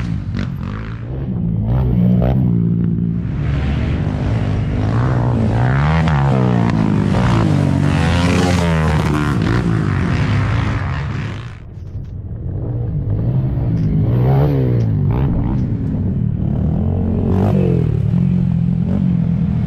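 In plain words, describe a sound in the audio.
Quad bike engines rev and roar loudly, rising and falling in pitch.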